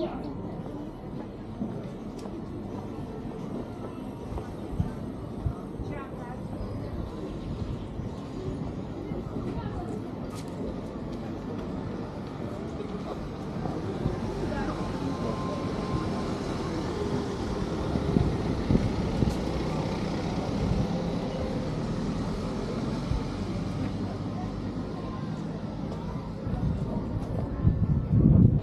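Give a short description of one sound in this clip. Footsteps of passers-by patter on the pavement.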